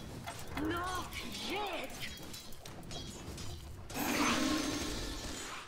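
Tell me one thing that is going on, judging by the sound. Weapons clash in a fight with sharp hits.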